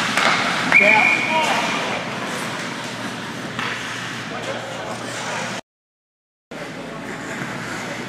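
Ice skates scrape and glide across the ice in a large echoing arena.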